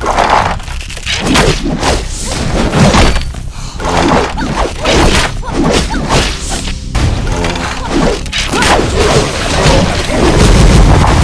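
A sword slashes through the air with sharp whooshes.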